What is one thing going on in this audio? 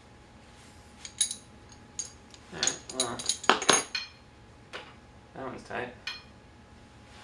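Metal parts of a wheelchair click and rattle close by.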